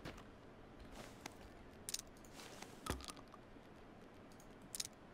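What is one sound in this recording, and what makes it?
Gear rustles and clicks as items are picked up.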